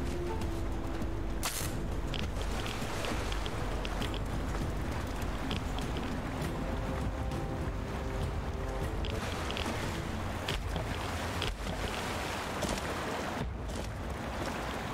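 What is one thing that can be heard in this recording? Footsteps crunch over loose rubble.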